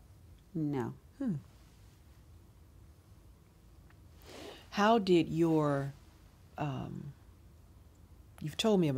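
A woman speaks calmly and warmly, close to a microphone, in short phrases with pauses.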